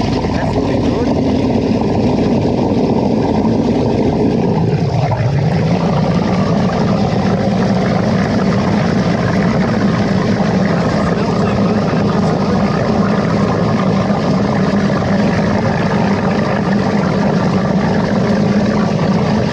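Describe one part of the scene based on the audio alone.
Muddy water bubbles and gurgles as it wells up from below ground.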